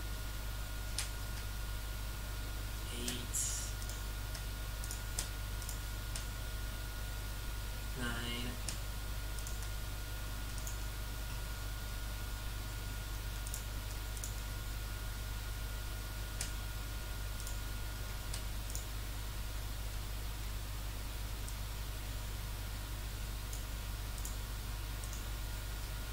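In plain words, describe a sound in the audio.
Mouse buttons click now and then.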